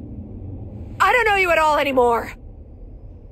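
A woman speaks in a tense, quiet voice, close by.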